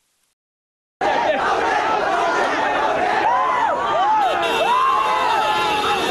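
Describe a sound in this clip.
A large crowd shouts and cheers close by.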